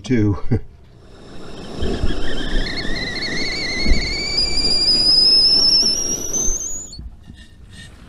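A stovetop kettle whistles with a rising pitch.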